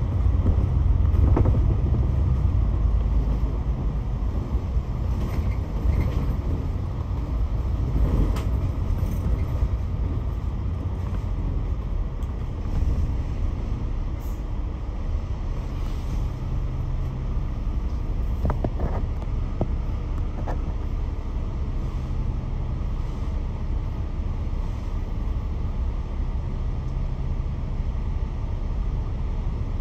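City traffic hums and passes on a busy road.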